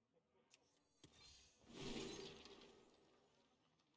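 A game card choice opens with a bright magical swell.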